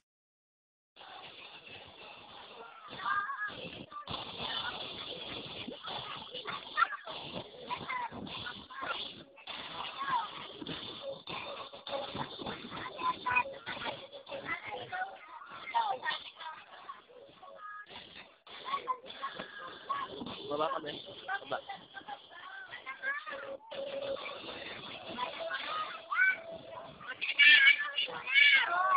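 Young children chatter and laugh close by.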